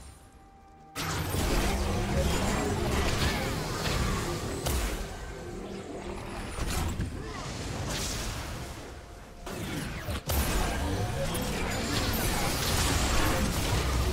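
Magic blasts whoosh and crackle in a fast fight.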